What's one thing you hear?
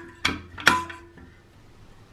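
A metal lid rattles and clanks under a hand.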